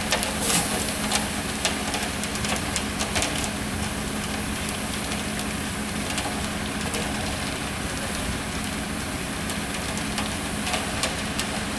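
A concrete mixer truck's engine rumbles steadily nearby.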